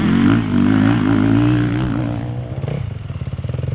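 A motorcycle engine roars loudly close by as a dirt bike accelerates.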